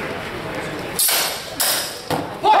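Practice swords clack together.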